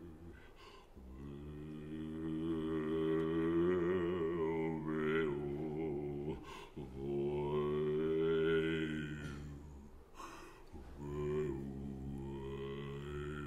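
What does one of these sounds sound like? A man sings through a microphone.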